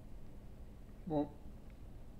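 A young man makes a short voiced sound close to a microphone.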